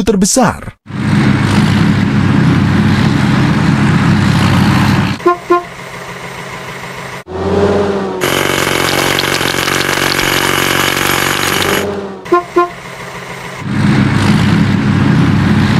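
A digger engine hums steadily.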